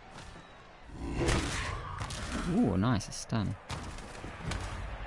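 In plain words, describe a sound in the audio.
Armoured players crash together with heavy thuds.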